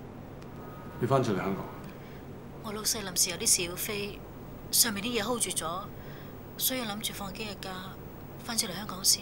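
A man speaks calmly into a phone.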